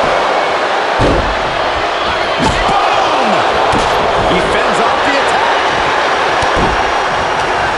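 Heavy thuds of bodies hitting a wrestling ring mat sound now and then.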